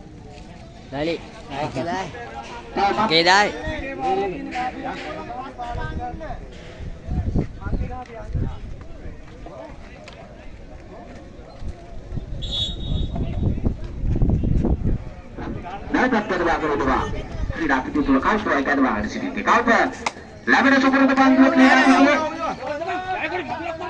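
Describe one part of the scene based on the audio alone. Young men shout and call out loudly nearby, outdoors.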